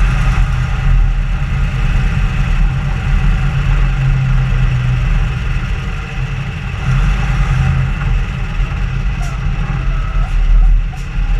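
A vehicle engine rumbles steadily while driving over rough sand.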